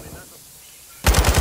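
A rifle fires a rapid burst of loud shots.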